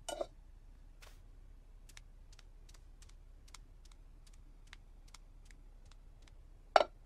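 Light footsteps tap across a hard floor.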